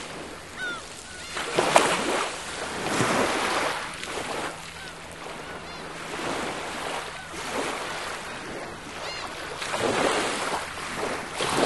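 Small waves wash and break steadily on a pebbly shore.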